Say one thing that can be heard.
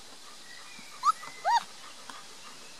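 A puppy whimpers in short high squeaks.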